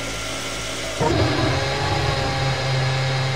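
A racing car engine starts up and idles with a loud, steady roar.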